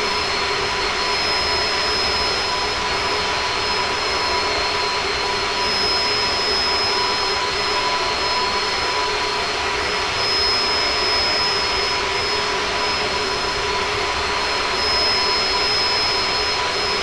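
Jet engines roar and whine steadily.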